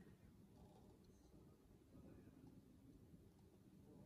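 Thick paint pours slowly from a cup.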